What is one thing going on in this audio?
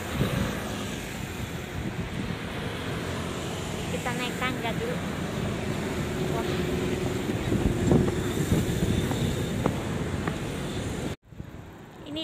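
Traffic rumbles along a city street.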